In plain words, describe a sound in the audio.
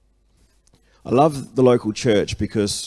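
A man speaks calmly into a microphone, heard through loudspeakers in a room.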